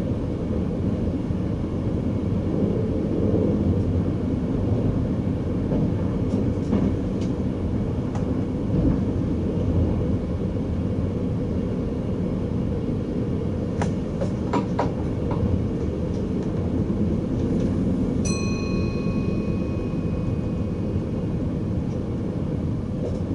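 A train rumbles steadily along the tracks from inside the cab.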